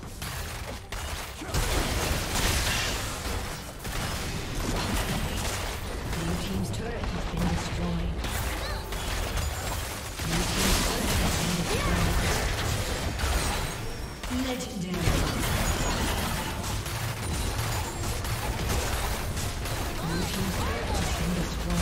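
Magic blasts and weapon hits crackle in a busy video game battle.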